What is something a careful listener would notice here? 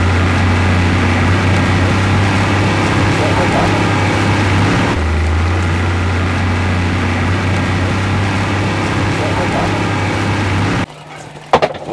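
An outboard motor drones steadily.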